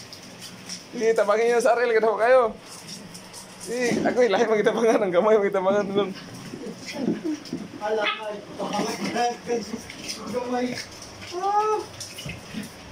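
Small dogs yelp and whine excitedly as they play.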